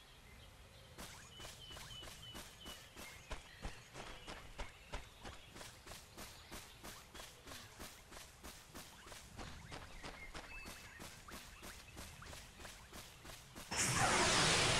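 Quick light footsteps patter on soft ground.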